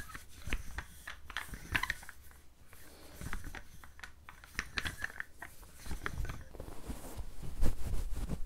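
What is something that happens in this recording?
Close-up tapping and scratching sounds crackle into a microphone.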